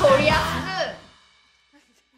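Loud punk music plays and stops abruptly.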